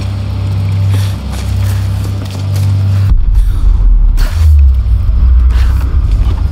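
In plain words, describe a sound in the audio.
Footsteps thud on wet ground and wooden planks.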